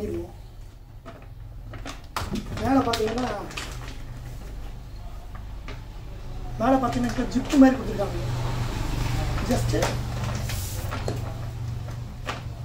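A plastic bag crinkles and rustles in a man's hands.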